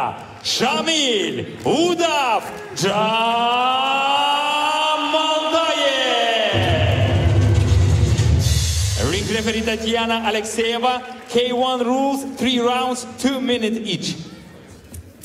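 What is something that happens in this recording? A man announces loudly with drawn-out calls over a loudspeaker in a large echoing hall.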